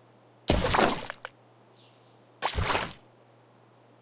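Cartoonish game blocks burst and pop with short bright chimes.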